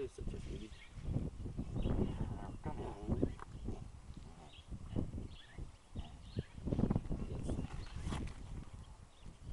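A tiger cub growls and snarls.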